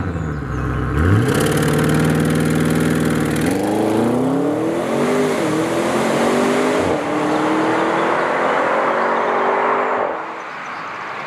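A car accelerates hard and speeds away, its engine rising through the gears.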